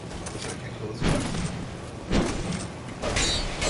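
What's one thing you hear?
A huge creature stomps and strikes with heavy thuds.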